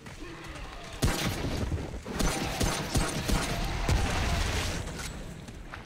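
Gunshots fire in rapid bursts, echoing down a tunnel.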